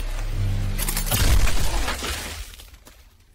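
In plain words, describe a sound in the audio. A loud explosion booms with a deep rumble.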